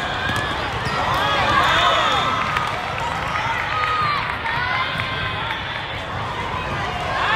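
Sneakers squeak on a hard court floor.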